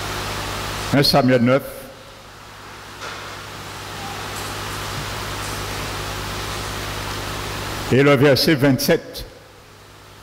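A man speaks slowly through a headset microphone and loudspeakers.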